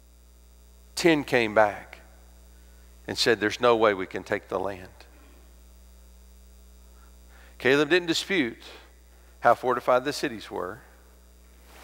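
A man speaks with emphasis through a microphone, in bursts with pauses.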